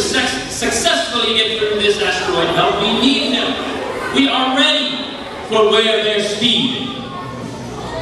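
A group of young people sings in a large echoing hall.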